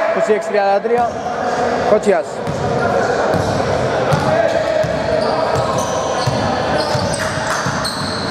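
A basketball bounces repeatedly on a wooden floor.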